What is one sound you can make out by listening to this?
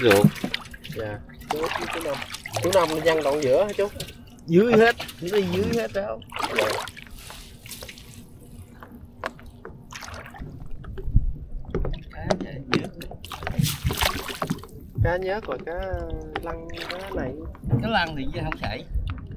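Water drips and splashes as a fishing net is pulled from a river.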